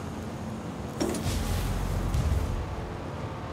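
A heavy door slides open with a loud hiss and rumble.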